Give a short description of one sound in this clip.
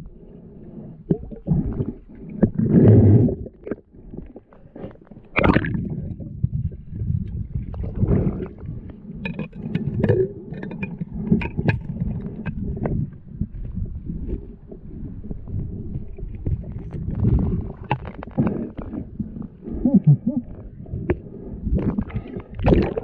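Water gurgles and rumbles, heard muffled from underwater.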